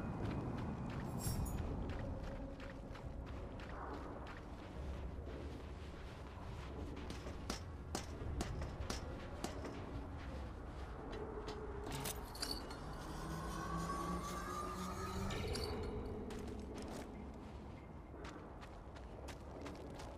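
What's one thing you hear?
Footsteps crunch quickly on sand and dirt.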